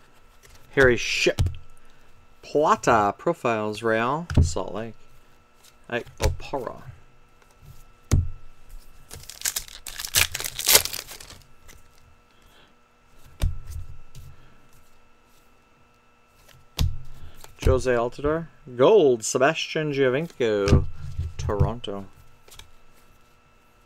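Trading cards rustle and slide against each other in someone's hands.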